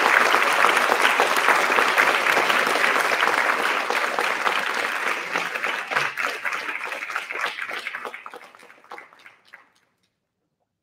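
An audience applauds loudly in an echoing hall, then the clapping fades away.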